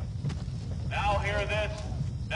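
A man shouts loudly from a distance.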